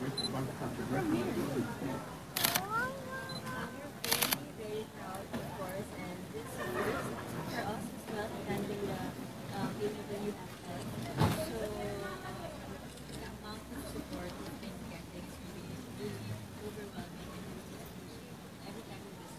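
A crowd murmurs in the background.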